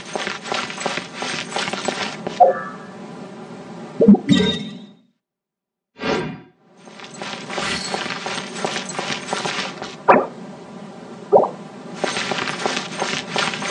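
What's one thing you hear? Quick footsteps patter on a stone path.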